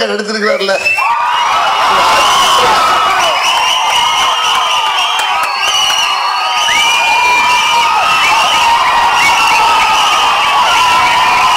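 A crowd cheers and whistles loudly.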